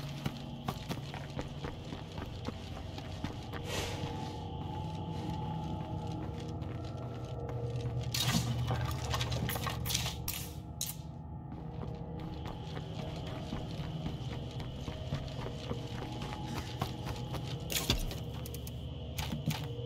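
Footsteps tread on gravel at a steady walking pace.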